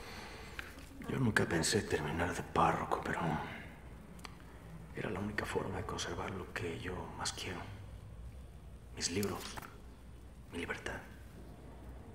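A man speaks softly and calmly nearby.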